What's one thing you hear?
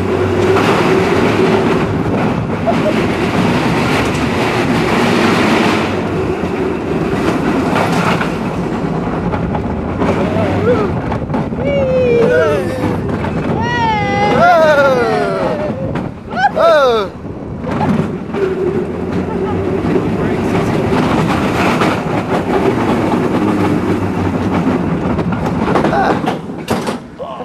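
A roller coaster rumbles and rattles loudly along its track.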